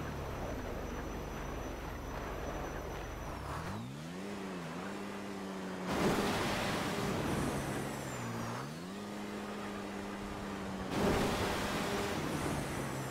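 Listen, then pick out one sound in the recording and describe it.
An engine hums steadily, its pitch sliding up and down.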